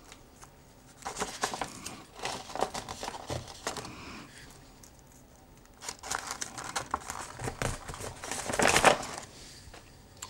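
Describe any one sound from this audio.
Wrapping paper crinkles and rustles under a man's hands.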